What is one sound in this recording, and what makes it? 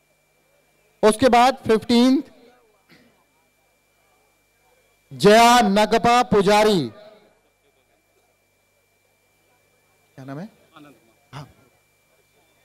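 A young man speaks loudly and with feeling through a microphone and loudspeakers, in short bursts.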